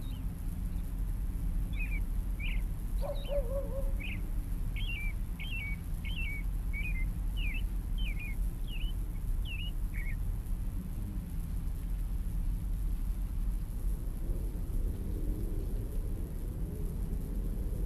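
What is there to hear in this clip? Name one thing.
Wind blows steadily outdoors through bare trees.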